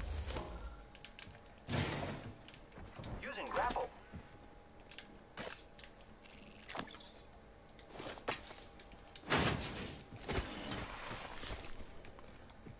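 Short video game sound effects click and whoosh as items are picked up and swapped.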